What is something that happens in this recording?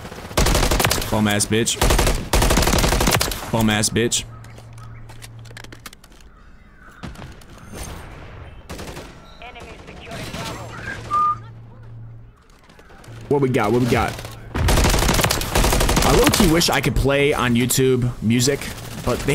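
Gunfire rattles in rapid bursts.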